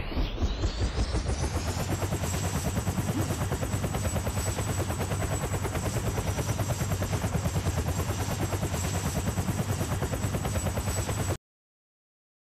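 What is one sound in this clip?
A helicopter's rotor whirs and thumps loudly.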